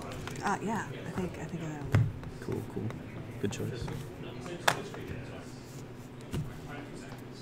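Card decks tap down onto a soft mat.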